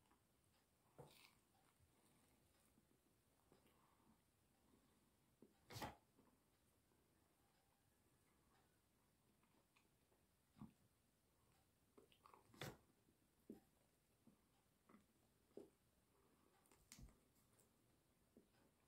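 A young man chews and eats food close by.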